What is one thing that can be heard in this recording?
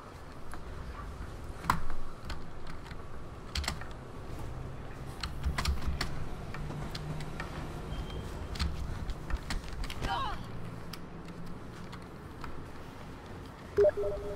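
Running footsteps patter on a hard surface.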